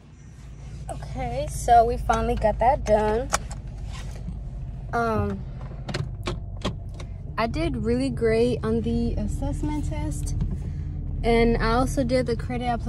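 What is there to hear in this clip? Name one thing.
A young woman talks casually and close up.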